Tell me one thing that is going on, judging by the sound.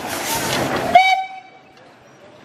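A train horn sounds briefly.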